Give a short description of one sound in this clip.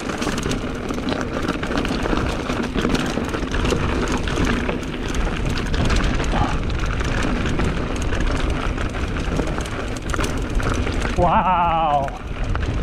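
Bicycle tyres rumble and crunch over a dirt trail.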